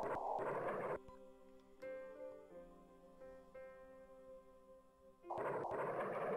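Short electronic tones chime in a melody.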